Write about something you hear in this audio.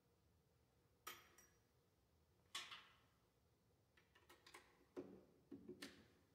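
A piano plays single notes that ring out in an echoing hall.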